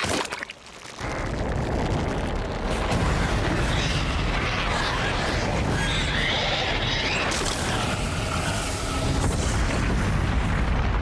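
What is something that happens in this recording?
A huge blast roars and rumbles on.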